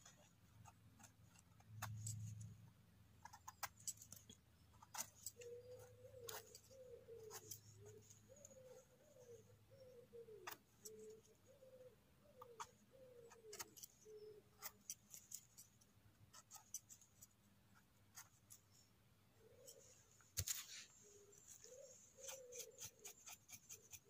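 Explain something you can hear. A small knife scrapes and clicks against a firm mushroom, close by.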